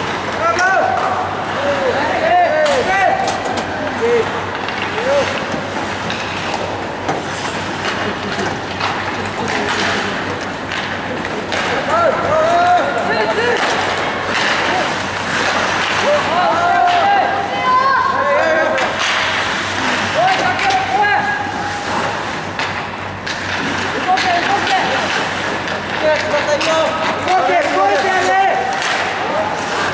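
Young men shout and call out across the rink.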